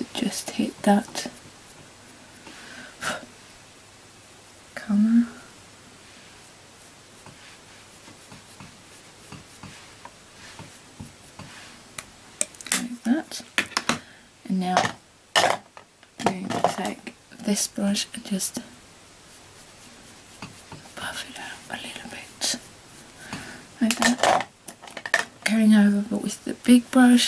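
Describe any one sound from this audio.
A young woman talks calmly and close by, in short bursts with pauses.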